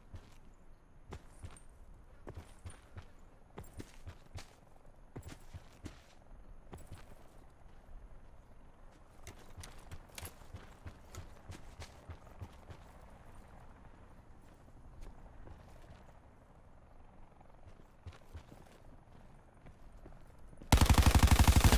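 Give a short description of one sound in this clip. Footsteps crunch over dry ground.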